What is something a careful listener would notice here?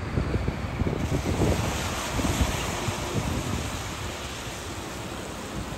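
Tyres hiss on wet pavement.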